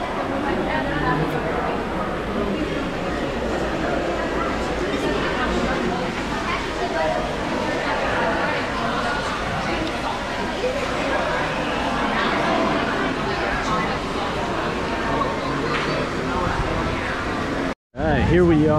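Many people chatter in a busy room.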